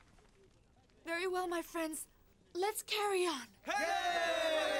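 A young woman speaks warmly.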